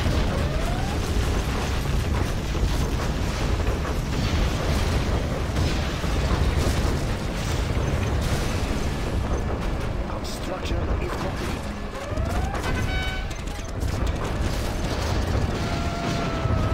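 Explosions boom and rumble in a battle.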